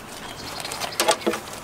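A goat bleats close by.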